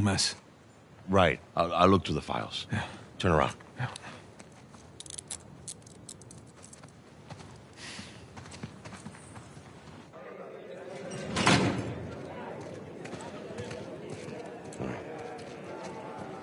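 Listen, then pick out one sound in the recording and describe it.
A middle-aged man answers in a low, gruff voice.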